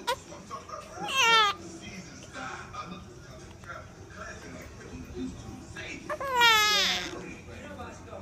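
A baby lets out short, high wails close by.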